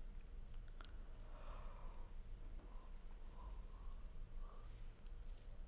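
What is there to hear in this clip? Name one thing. A young man yawns softly.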